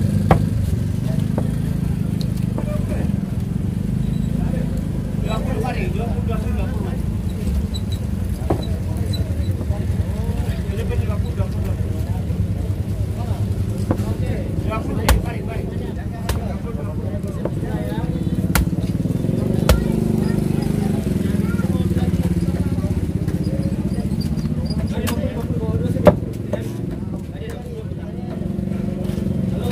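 A cleaver chops through fish on a wooden block with sharp thuds.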